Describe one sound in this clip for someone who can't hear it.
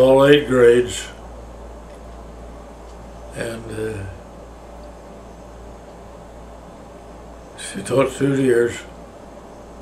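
An elderly man speaks slowly and quietly, close by, pausing between phrases.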